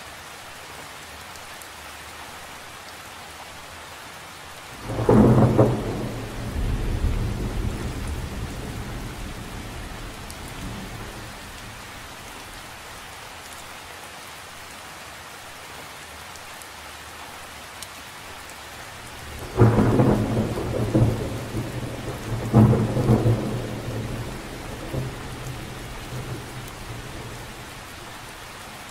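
Rain patters steadily on the surface of a lake.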